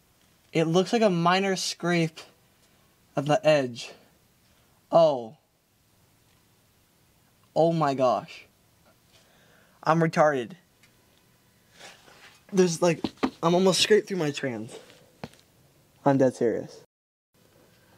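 A young man speaks calmly and close by, in short phrases with pauses.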